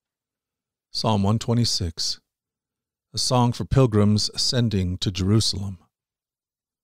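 A man speaks calmly and close into a microphone, in short phrases.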